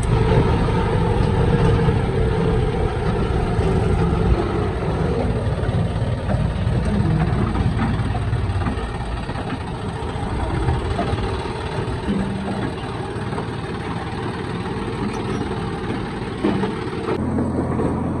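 A tractor engine chugs loudly and steadily close by.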